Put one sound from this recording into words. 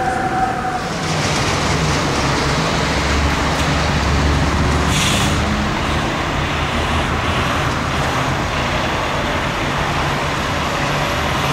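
A fire truck engine rumbles as it idles.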